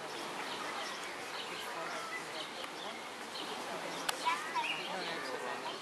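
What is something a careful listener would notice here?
Several adults and children chat nearby outdoors.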